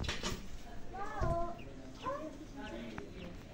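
A hen clucks.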